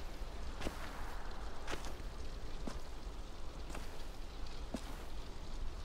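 Footsteps crunch slowly on rough ground.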